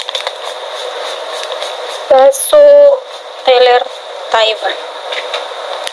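A plastic bag crinkles in a hand.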